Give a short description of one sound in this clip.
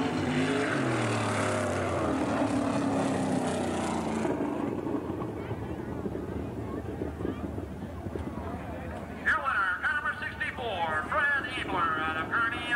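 A crowd cheers.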